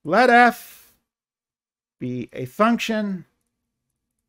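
An older man speaks calmly and slowly, close to a microphone.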